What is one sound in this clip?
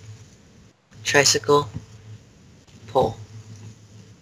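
A teenage boy speaks over an online call.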